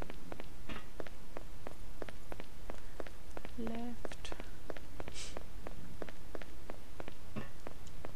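Footsteps tread steadily and quickly along a hard floor.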